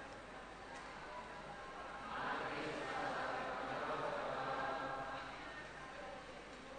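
A large crowd of men and women murmurs and chants together, swelling louder for a few seconds.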